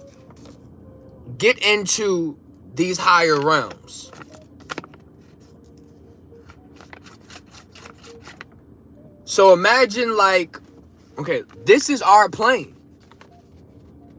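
Paper rustles in hands.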